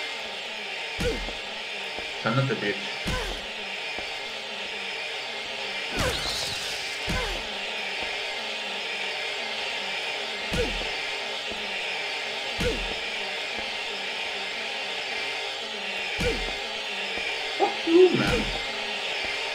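A metal pipe strikes a creature with dull, heavy thuds.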